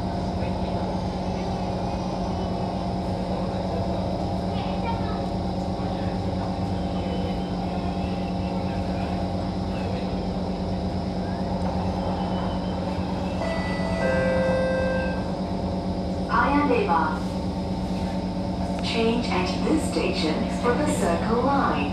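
A train hums and rumbles steadily along the tracks.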